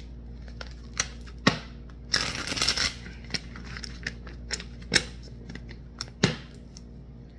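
Playing cards tap and snap against a table.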